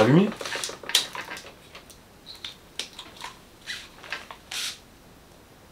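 Small plastic parts clatter and click as they are handled.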